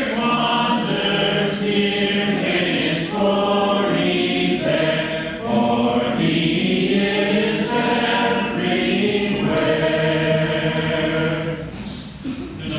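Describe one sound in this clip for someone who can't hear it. A man sings a slow hymn through a microphone.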